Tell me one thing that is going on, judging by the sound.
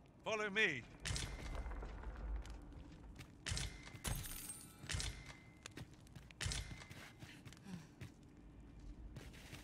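Footsteps crunch on a rocky floor.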